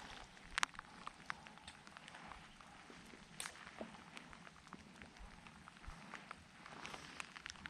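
Light rain patters on water nearby, outdoors.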